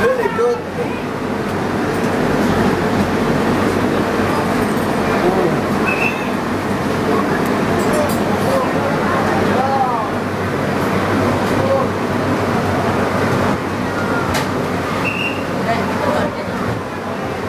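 A crowd of men and women chatter loudly all around, close by.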